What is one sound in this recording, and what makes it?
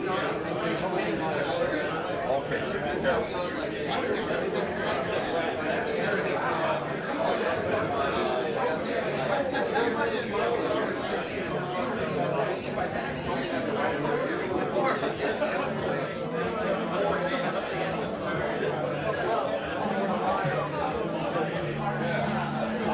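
Many voices of men and women chatter steadily nearby and across a large busy room.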